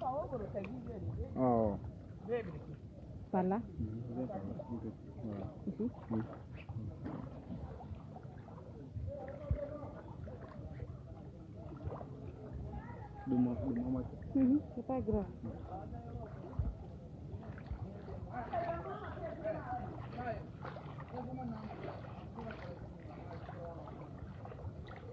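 Feet wade and splash through shallow water.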